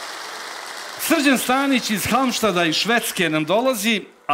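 A man speaks loudly through a microphone in a large hall.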